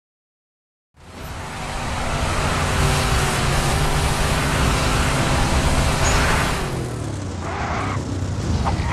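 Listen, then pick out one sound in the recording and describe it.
A car engine roars as it speeds along.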